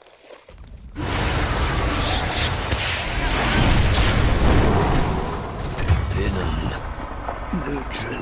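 Magic blasts whoosh and crackle amid a clashing fight.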